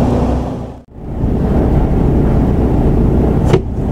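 A truck engine hums steadily from inside the cab while driving.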